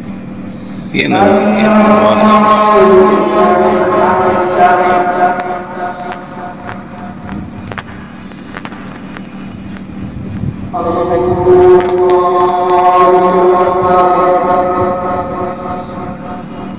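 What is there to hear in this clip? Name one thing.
A man chants a long call to prayer through a loudspeaker, outdoors with echo.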